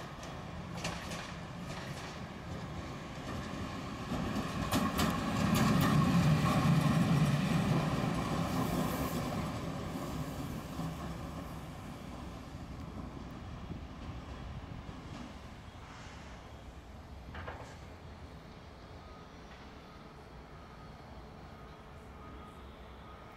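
An electric locomotive rumbles past close by, then fades into the distance.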